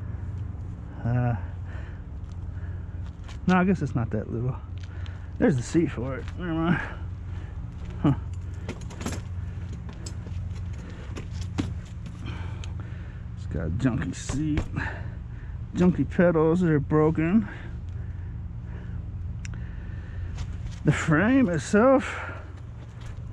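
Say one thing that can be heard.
A man talks close by in short bursts.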